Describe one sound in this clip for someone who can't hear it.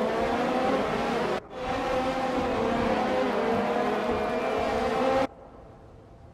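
Racing car engines scream at high revs and shift gears.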